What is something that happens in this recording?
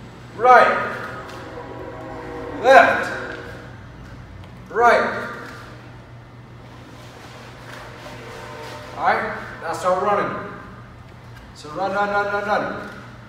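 A young man shouts out short, sharp calls, close by in an echoing room.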